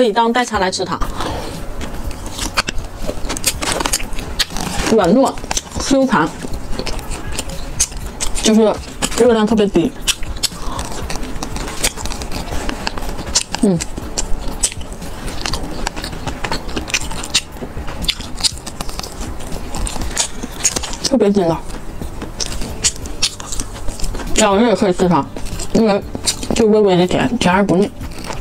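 A young woman chews and bites into crisp pastry close to a microphone.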